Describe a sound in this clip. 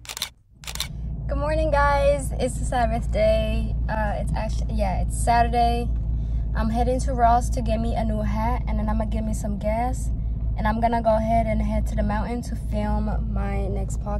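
A young woman talks with animation close to the microphone.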